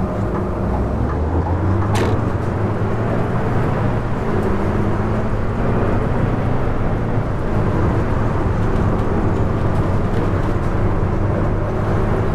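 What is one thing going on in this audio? A diesel city bus engine pulls away and speeds up.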